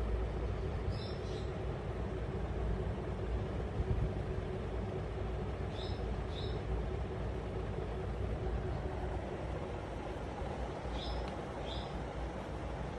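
A cockatiel chirps softly in short pairs of notes.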